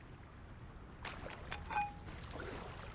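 A metal bar clanks against a metal grate.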